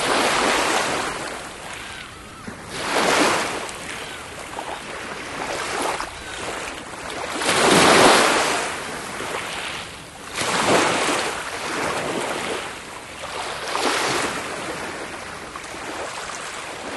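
Small waves wash onto a shore and draw back in regular surges.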